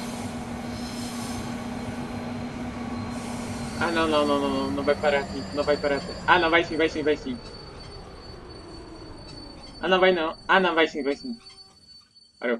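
A train rumbles along steadily and slows to a stop.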